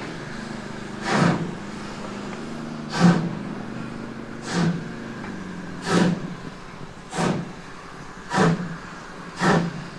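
A steam locomotive chuffs in loud, slow, regular puffs as it approaches.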